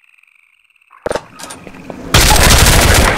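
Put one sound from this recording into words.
A metal door latch clicks and a door swings open.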